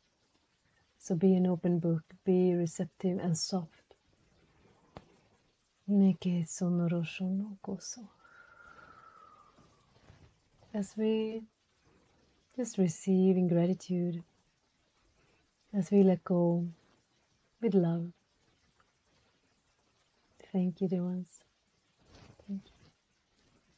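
A woman speaks calmly and closely, in short phrases with pauses.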